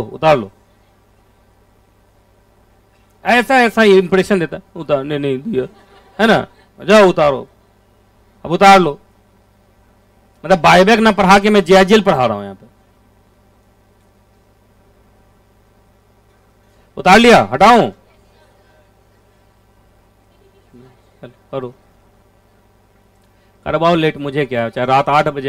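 A man lectures with animation into a close microphone, in bursts with pauses.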